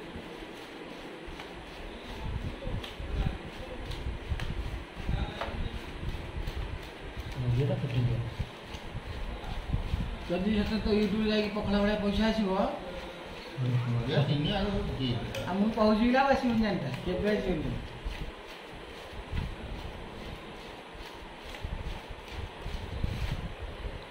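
Hands squish and knead a moist, crumbly mixture.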